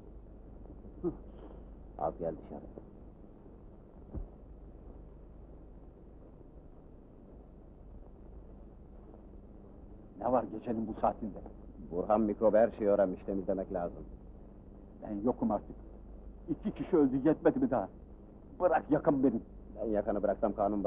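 Two men talk tensely, close by.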